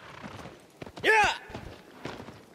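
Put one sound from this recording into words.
A horse neighs loudly once.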